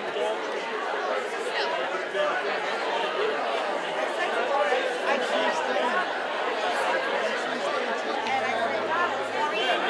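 An electric guitar is strummed through an amplifier.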